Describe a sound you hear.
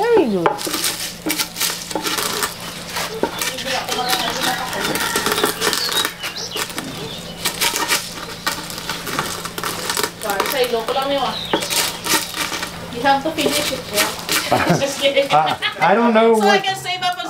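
A wooden pestle thuds and crunches on beans in a wooden mortar.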